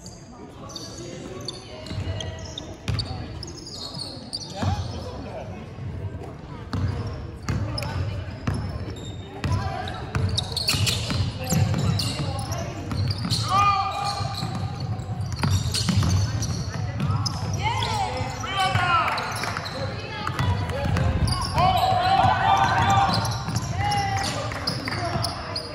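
A basketball bounces on a hardwood court in a large echoing hall.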